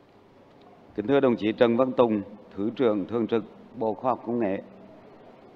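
A man speaks from a lectern into a microphone in a large hall.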